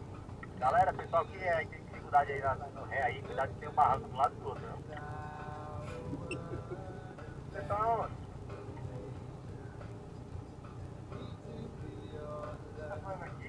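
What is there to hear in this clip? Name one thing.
A vehicle engine idles steadily nearby.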